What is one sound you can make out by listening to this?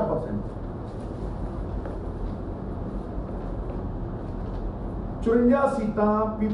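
A middle-aged man speaks into microphones, reading out calmly.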